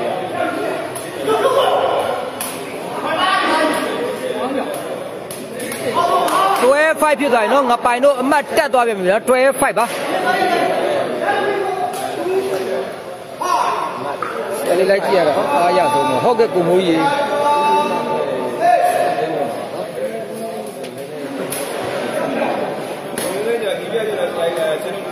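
A ball thuds sharply as players kick it back and forth.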